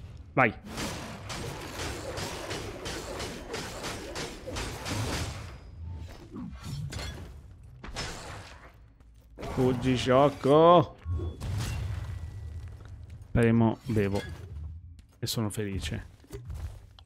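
Metal blades swish and clash in a fight.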